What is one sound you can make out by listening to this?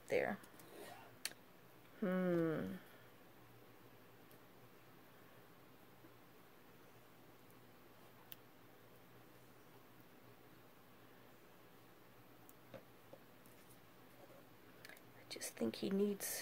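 Paper rustles softly as pieces are pressed onto a card.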